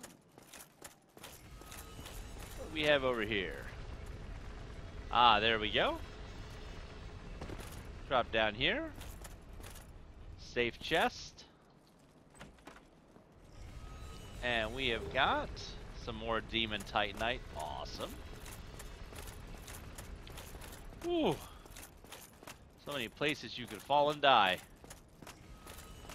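Armored footsteps clatter quickly on stone.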